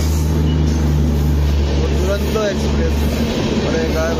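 A train engine hums with a deep steady drone.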